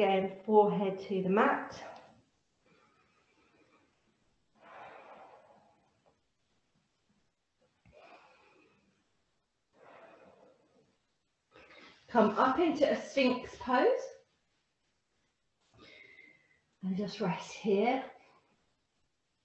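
A woman speaks calmly and clearly, instructing, in short phrases with pauses.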